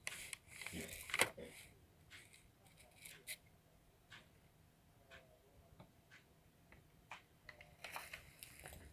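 A paper receipt rustles and crinkles as it is handled.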